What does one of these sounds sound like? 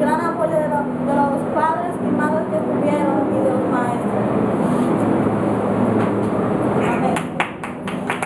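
A group of children sing together in a room.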